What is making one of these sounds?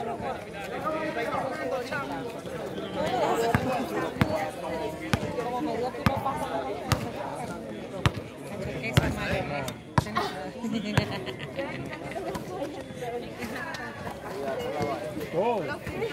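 Men call out and shout to each other nearby.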